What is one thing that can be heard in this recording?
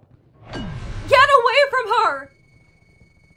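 A young woman shouts loudly.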